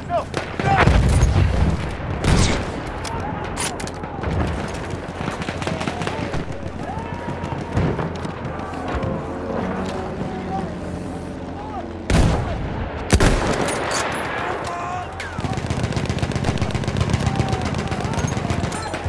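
Distant gunfire and explosions rumble steadily.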